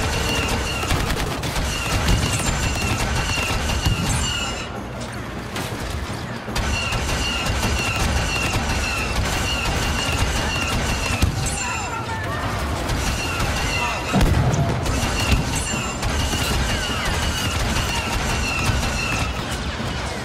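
Blaster fire crackles in rapid bursts.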